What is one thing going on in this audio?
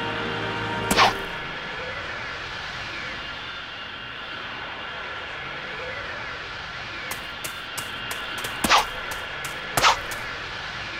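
Sharp cracks of energy snap now and then.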